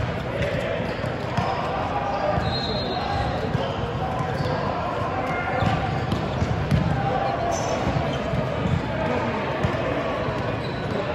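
Many teenage players chatter and call out in a large echoing hall.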